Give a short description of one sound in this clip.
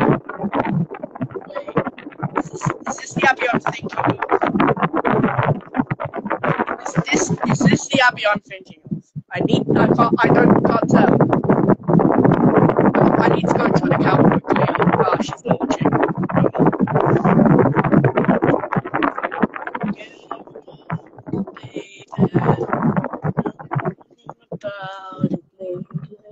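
A girl talks with animation through an online call.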